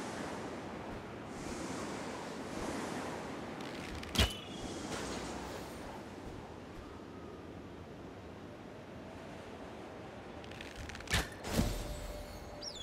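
Wind rushes steadily past a gliding figure.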